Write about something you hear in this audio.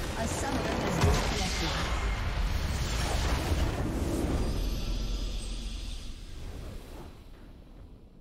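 A game's crystal structure explodes with a loud rumbling blast.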